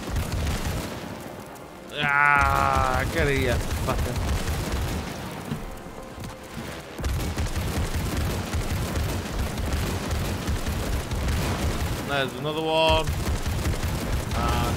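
A heavy machine gun fires rapid bursts close by.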